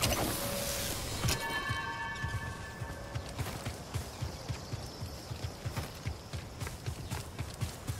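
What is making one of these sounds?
Tall grass rustles as a figure runs through it.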